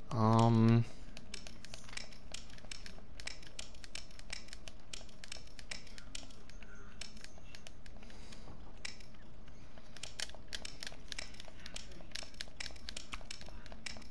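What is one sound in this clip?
Lock dials click as they turn, over and over.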